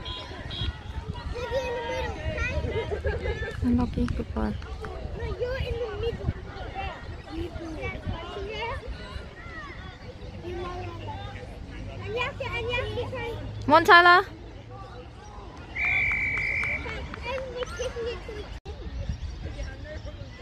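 A crowd of adult and child spectators shout and call out from the sideline outdoors.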